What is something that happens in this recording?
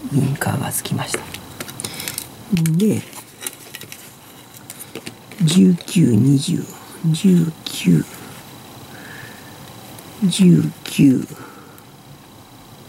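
Small plastic parts tap and click as they are handled.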